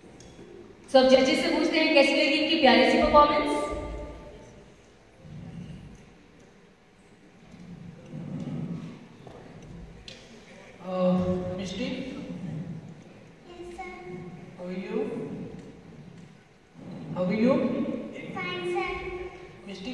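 A young girl sings into a microphone over loudspeakers in a large hall.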